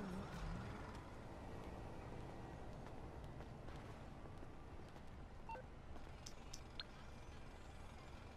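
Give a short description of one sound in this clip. Footsteps tread on pavement.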